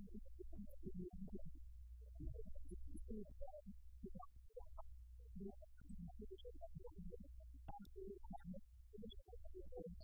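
A woman speaks calmly and steadily into a microphone.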